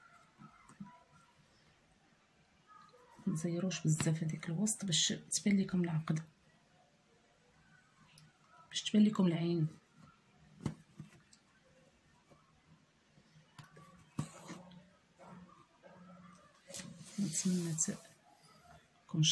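Thread is pulled through cloth with a soft rustle.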